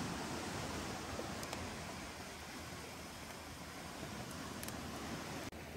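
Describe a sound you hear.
A wood fire crackles softly outdoors.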